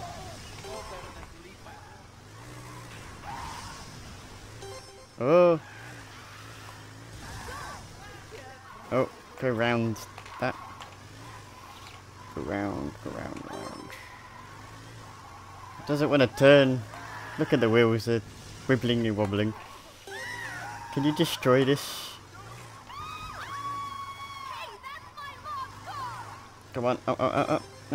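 A motorbike engine revs and roars.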